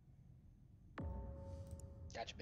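A loud electronic alarm blares suddenly.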